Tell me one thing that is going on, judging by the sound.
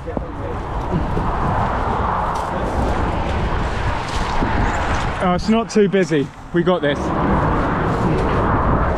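Cars rush past on a road nearby.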